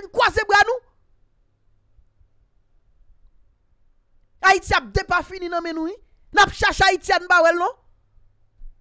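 A young man speaks with animation, close to a microphone, in short bursts.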